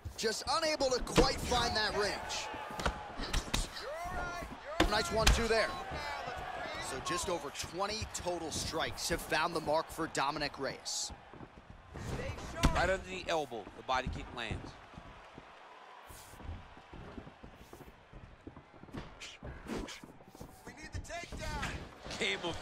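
Punches and kicks thud against a body.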